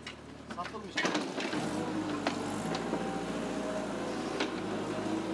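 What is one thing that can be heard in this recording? A digger's engine rumbles steadily nearby.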